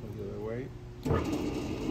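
A switch clicks as a button is pressed.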